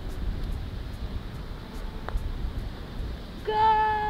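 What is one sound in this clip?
A golf club taps a ball.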